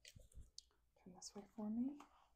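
A woman speaks softly, close to the microphone.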